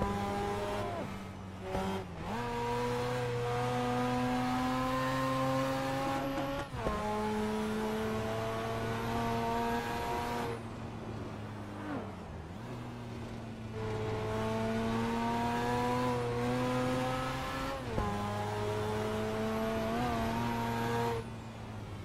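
A car engine revs hard, rising in pitch through each gear and dropping sharply at each gear change.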